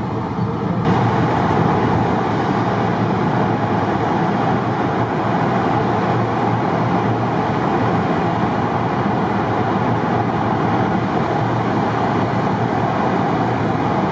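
Road noise roars steadily inside a car driving through an echoing tunnel.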